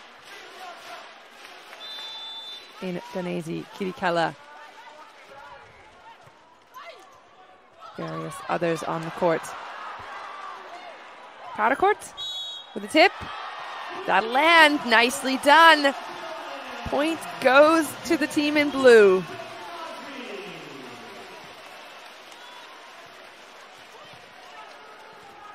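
A crowd cheers and chants in a large echoing arena.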